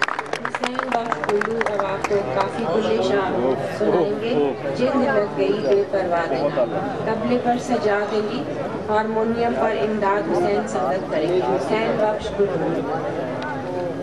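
A woman speaks into a microphone over a loudspeaker, reciting with feeling.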